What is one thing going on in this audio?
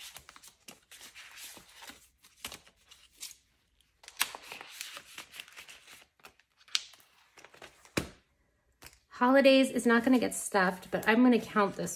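Plastic sleeves crinkle close by.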